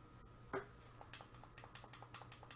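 Short soft electronic pops sound in quick succession as points are collected.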